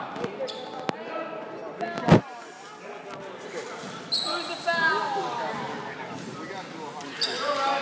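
A crowd of spectators chatters in an echoing gym.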